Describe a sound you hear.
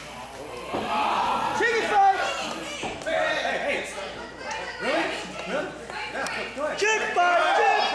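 Men shout loudly in an echoing hall.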